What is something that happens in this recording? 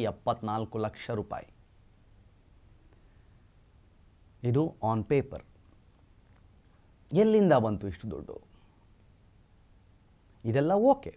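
A young man speaks calmly into a microphone, in short bursts with pauses.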